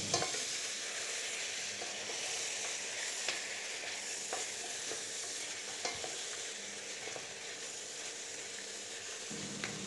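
A spatula scrapes and stirs meat in a metal pot.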